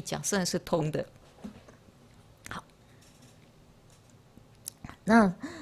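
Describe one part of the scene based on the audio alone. An elderly woman speaks calmly into a microphone, heard through a loudspeaker.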